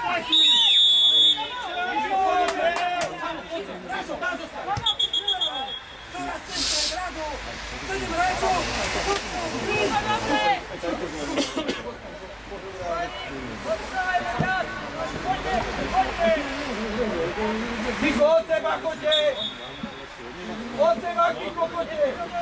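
Young players shout to each other across an open pitch, heard from a distance.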